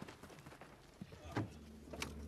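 A door handle clicks and rattles.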